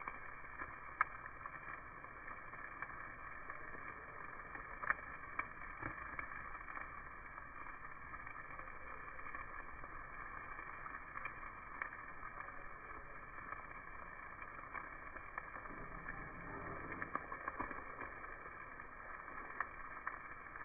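Metal tongs click against a grill grate.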